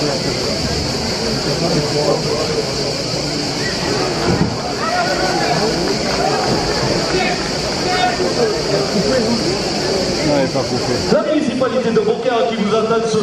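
A large crowd chatters and calls out in an open arena.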